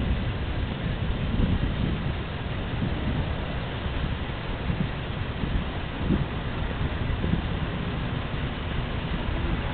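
A car drives closer and passes by.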